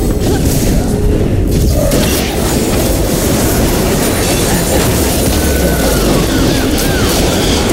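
Game spell effects whoosh and clash during a fight.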